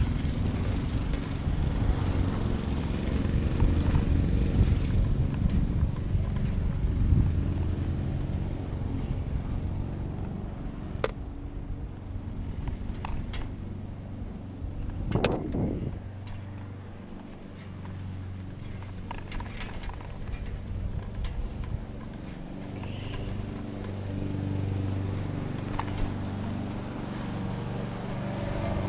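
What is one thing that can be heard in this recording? Skateboard wheels rumble steadily over rough asphalt.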